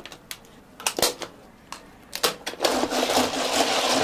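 Plastic lids snap onto cups.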